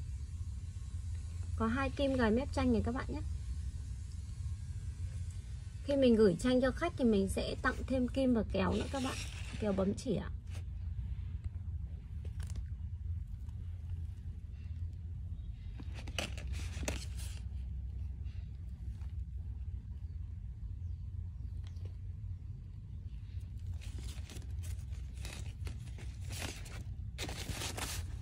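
Stiff fabric rustles and crinkles as hands handle it.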